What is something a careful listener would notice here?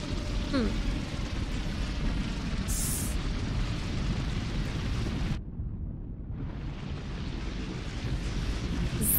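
A young woman talks into a microphone with animation.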